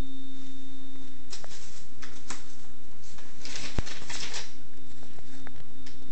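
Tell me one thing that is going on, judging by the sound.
Packing peanuts rustle and crunch as a hand digs through them.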